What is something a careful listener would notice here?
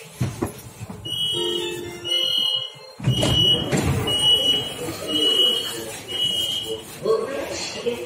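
A door warning chime beeps rapidly.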